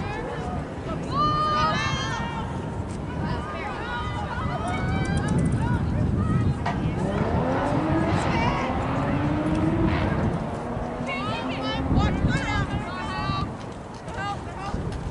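Young women shout and call out across an open field at a distance.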